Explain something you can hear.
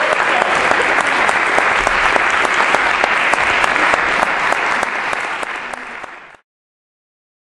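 An audience claps steadily in a large hall, then the clapping fades away.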